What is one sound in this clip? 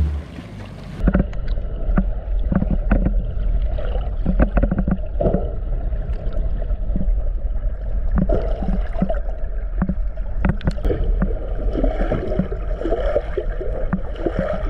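Underwater, a muffled rumble and bubbling fill the sound.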